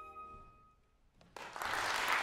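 A flute plays a held note in an echoing hall.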